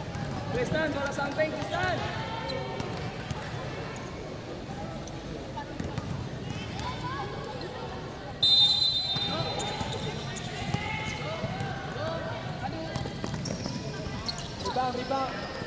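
A basketball bounces.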